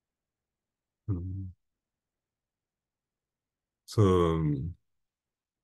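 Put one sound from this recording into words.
A young man speaks calmly through a microphone in an online call, in short bursts.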